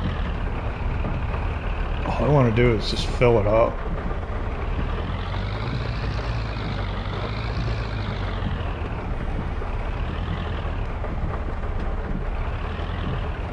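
A tractor engine rumbles steadily, rising and falling as it drives.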